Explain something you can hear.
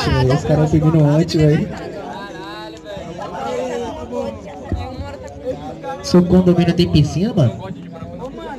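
A group of young men shout and cheer loudly close by.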